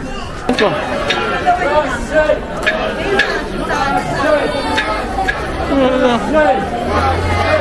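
A group of children chant loudly together nearby.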